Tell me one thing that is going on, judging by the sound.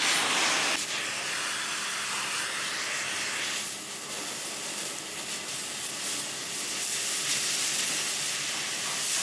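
A cutting torch hisses and roars steadily.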